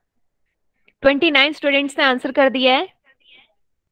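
A young woman speaks through a microphone on an online call.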